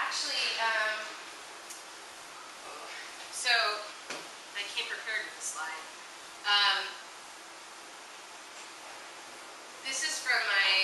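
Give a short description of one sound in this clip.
A woman speaks into a microphone in an echoing room, pausing often.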